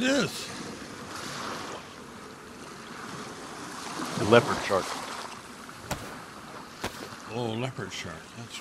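Waves wash over open water.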